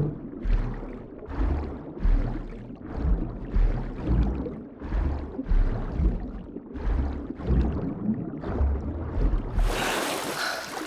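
A swimmer strokes through water underwater in slow, rhythmic swooshes.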